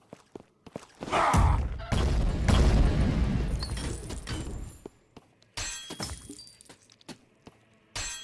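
Game weapons strike with sharp hits.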